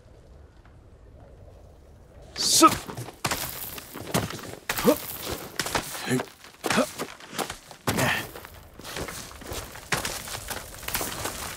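Hands scrape and grip on rock during a climb.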